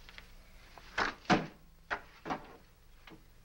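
Objects thump and knock as a man handles them.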